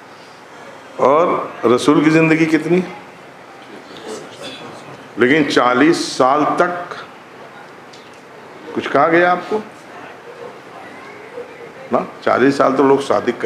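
An elderly man speaks into a microphone in bursts, with long pauses, his voice carried by a loudspeaker.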